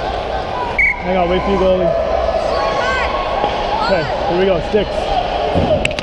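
Children shout across a large echoing rink.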